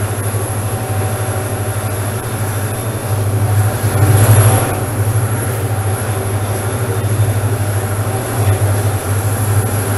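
Wind rushes past the moving train.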